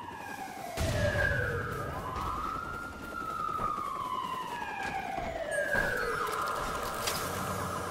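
Footsteps run over grass and dirt.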